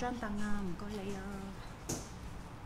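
A woman speaks close by in a drawn-out, sing-song voice.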